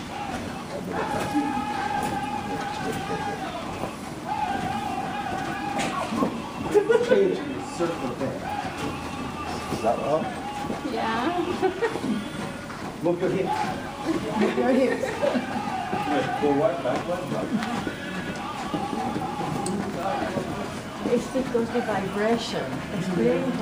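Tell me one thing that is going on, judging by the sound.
A group of men and women sing together, holding long notes.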